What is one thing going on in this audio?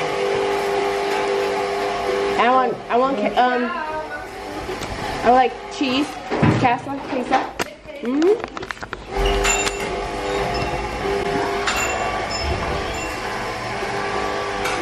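An extractor fan hums steadily.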